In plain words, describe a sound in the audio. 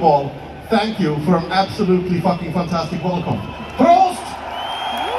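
A man sings loudly through big loudspeakers outdoors.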